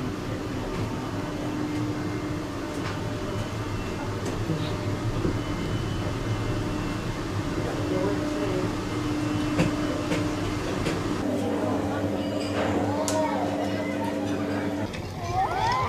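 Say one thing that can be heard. Cable car machinery hums steadily.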